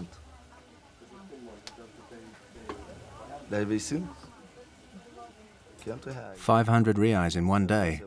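A young man speaks quietly and emotionally, close by.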